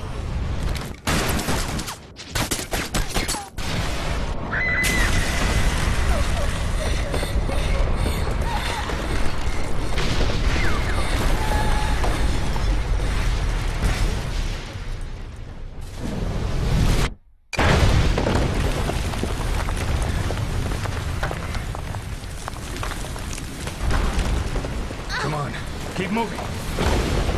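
Explosions and rumbling debris roar loudly.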